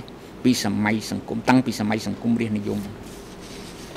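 An elderly man reads out calmly into a microphone.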